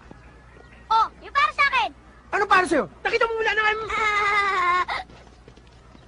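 A young boy speaks loudly.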